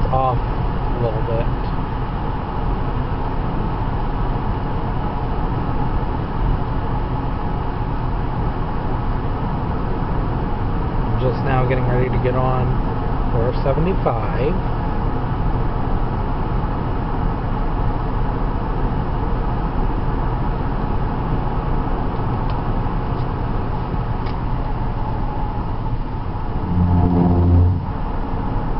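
Tyres roar on the highway.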